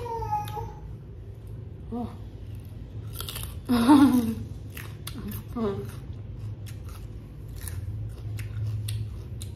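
A young woman chews food with crunchy, smacking sounds.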